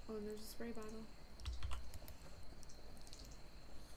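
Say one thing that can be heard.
Water bubbles softly in a pot on a stove.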